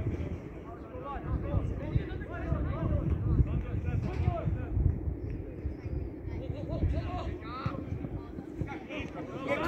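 Football players shout to each other far off across an open field.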